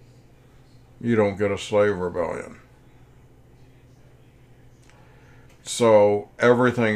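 A middle-aged man speaks calmly into a microphone, lecturing.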